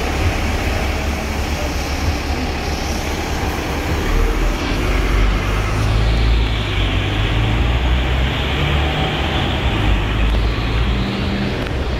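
City traffic rumbles steadily on a nearby road.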